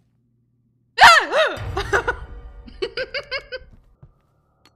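A young woman cries out loudly and then speaks excitedly into a nearby microphone.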